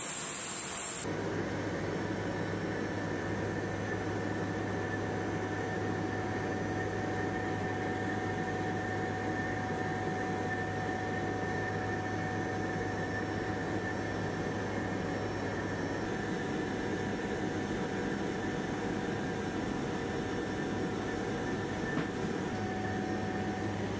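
A helicopter engine and rotor drone loudly and steadily from inside the cabin.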